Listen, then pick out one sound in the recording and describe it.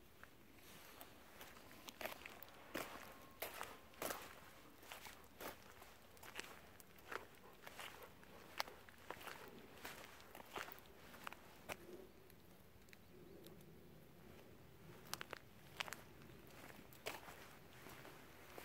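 Footsteps scuff on a paved path outdoors.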